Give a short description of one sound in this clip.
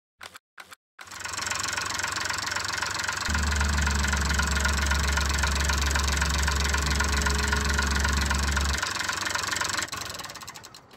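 A heavy excavator's diesel engine rumbles and whines steadily.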